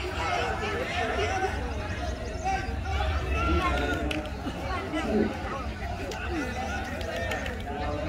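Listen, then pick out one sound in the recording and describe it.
Two bulls clash heads with dull thuds.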